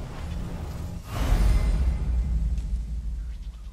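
A man bites into an apple with a crunch.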